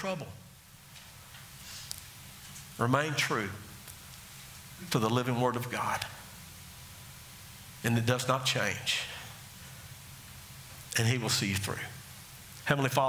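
A man speaks slowly through a microphone in a large room, pausing between phrases.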